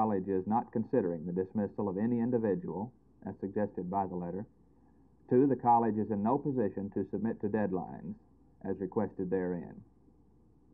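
A middle-aged man speaks calmly and clearly, close to a microphone.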